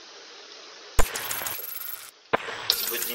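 A game menu plays a sharp swooshing transition sound.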